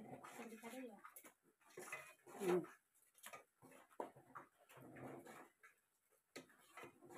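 A metal ladle scrapes and clinks against a metal pot.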